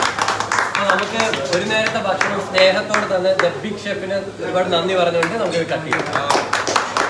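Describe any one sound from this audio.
A group of men sing together cheerfully.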